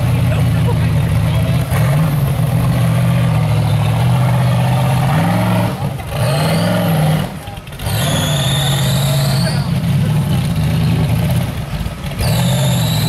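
An off-road buggy's engine revs hard and roars as it climbs over rocks.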